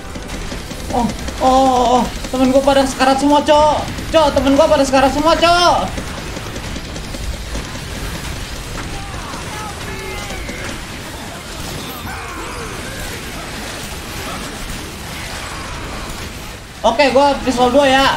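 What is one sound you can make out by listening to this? A young man talks loudly and with animation into a close microphone.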